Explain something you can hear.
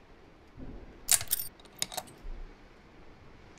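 A key turns in a lock with a click.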